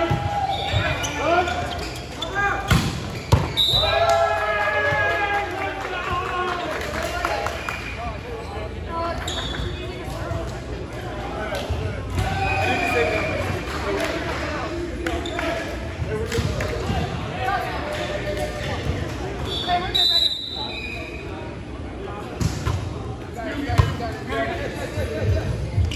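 Young men and women call out and talk in a large echoing gym.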